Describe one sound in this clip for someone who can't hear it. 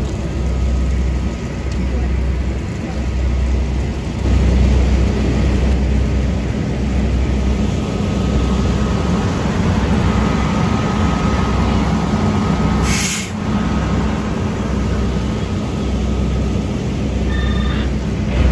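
A fire engine's pump engine rumbles steadily nearby.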